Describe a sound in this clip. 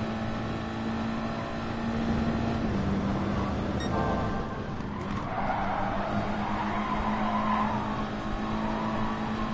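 A racing car engine hums steadily at high revs, shifting pitch as gears change.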